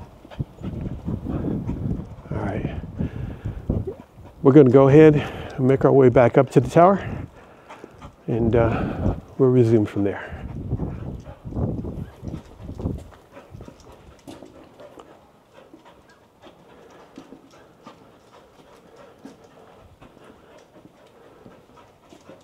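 A dog's paws patter on cobblestones.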